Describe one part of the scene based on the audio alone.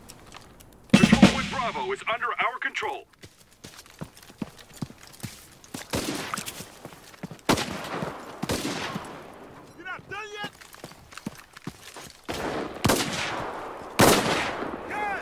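Gunshots crack sharply, some close and some distant.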